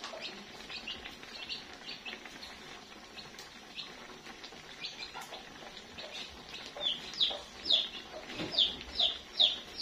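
Food sizzles gently in a hot pan.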